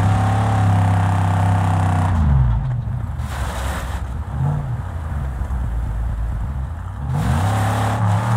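A buggy engine roars loudly, dropping in pitch and then revving up again.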